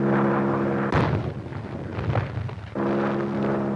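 An explosion bursts into water.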